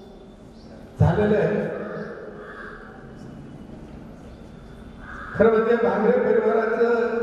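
An elderly man speaks into a microphone over loudspeakers.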